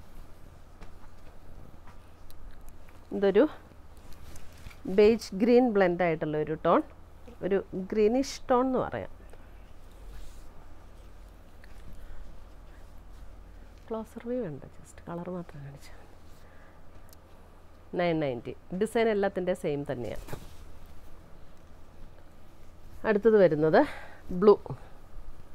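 Cloth rustles as fabric is unfolded and draped.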